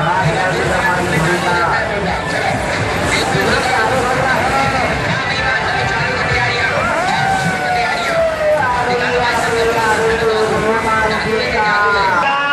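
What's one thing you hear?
A fairground swing ride rumbles and whooshes as it swings back and forth.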